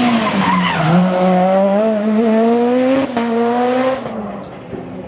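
A rally car engine roars loudly as the car speeds past and shifts gears.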